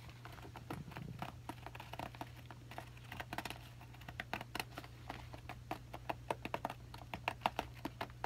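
Fingernails tap and scratch on a stiff bag.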